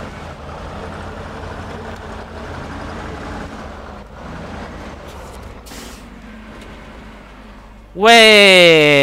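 A truck engine rumbles as it drives slowly over rough ground.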